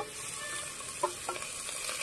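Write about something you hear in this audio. Meat slides off a metal plate into a pot.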